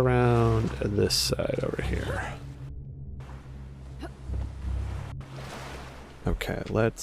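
Ocean waves splash and slosh around close by.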